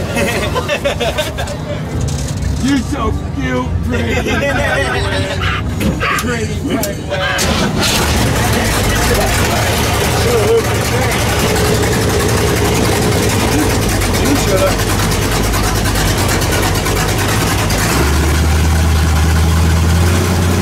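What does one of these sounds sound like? A large engine idles loudly and rumbles close by.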